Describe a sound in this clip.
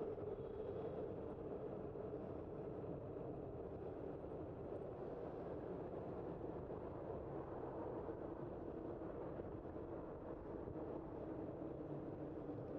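Cars pass by on the road nearby.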